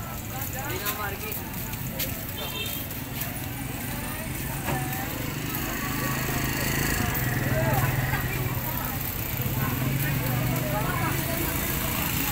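Motorcycle engines hum along the street.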